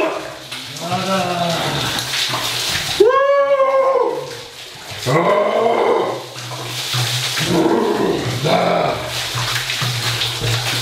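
Water pours and splashes over a man's body.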